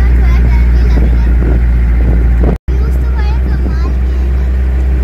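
A young girl talks excitedly and laughs close by.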